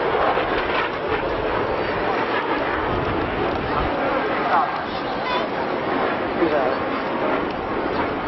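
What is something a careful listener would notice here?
A jet engine roars steadily overhead.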